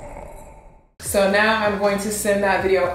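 A young woman speaks calmly and close into a microphone.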